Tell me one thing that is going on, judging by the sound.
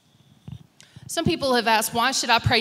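A middle-aged woman speaks into a microphone.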